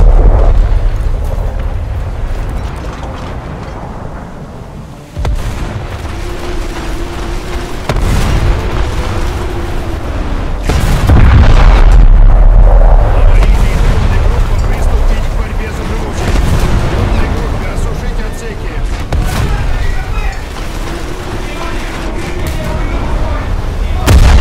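A ship's engine rumbles steadily.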